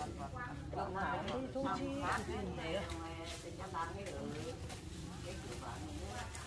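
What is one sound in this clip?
Women talk casually nearby, outdoors.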